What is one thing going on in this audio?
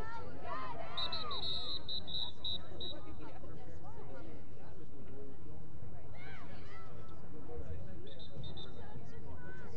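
A referee blows a sharp whistle in short blasts.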